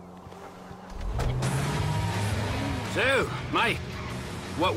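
A car engine starts and revs.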